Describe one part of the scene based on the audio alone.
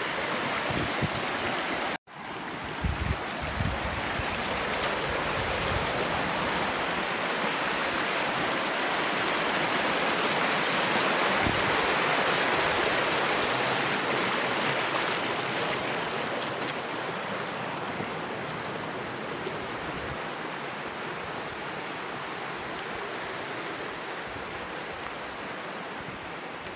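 A fast stream rushes and gurgles loudly over rocks nearby.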